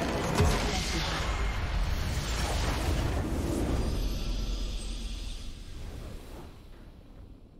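A loud explosion booms and rumbles, then slowly fades away.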